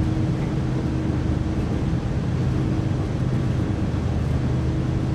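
A diesel locomotive engine drones steadily with a low hum.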